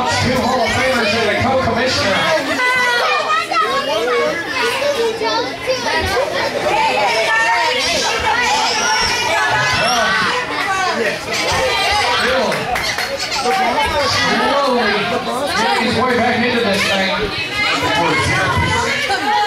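A crowd of men and women shouts and chatters loudly in an echoing hall.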